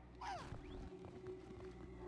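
Electricity crackles and buzzes.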